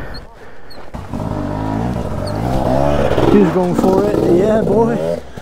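A second dirt bike engine drones ahead.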